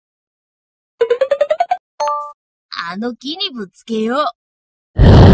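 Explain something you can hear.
A young boy cries and whimpers.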